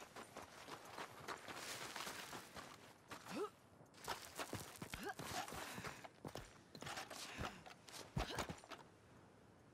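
Boots scrape and thud on rock while climbing.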